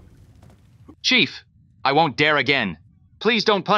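A young man pleads anxiously, close by.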